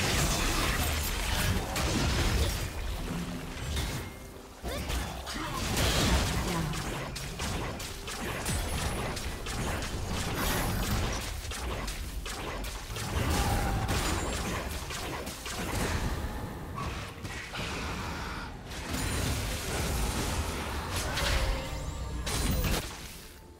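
Game weapons clash and strike with sharp hits.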